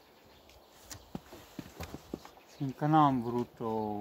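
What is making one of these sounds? A wooden hive lid knocks as it is set down.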